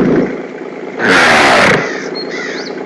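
A bull bellows loudly.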